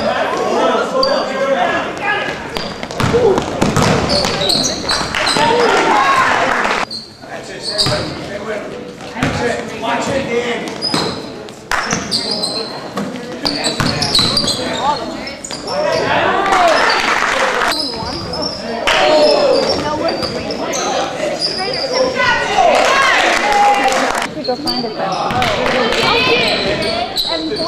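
Sneakers squeak sharply on a hardwood floor.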